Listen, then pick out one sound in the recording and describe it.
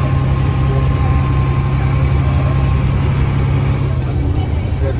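A bus engine whines at a steady pitch, then drops off.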